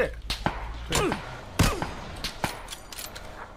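Gunshots crack sharply in a game.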